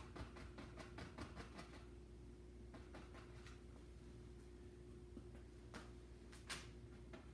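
A paintbrush taps and brushes against a canvas.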